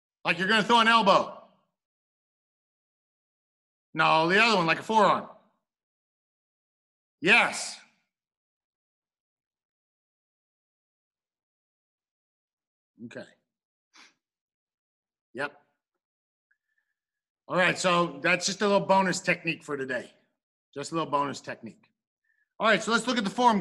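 A middle-aged man calls out commands loudly over an online call, in short bursts.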